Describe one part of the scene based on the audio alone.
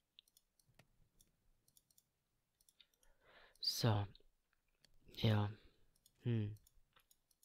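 Soft clicks sound as items are moved in a menu.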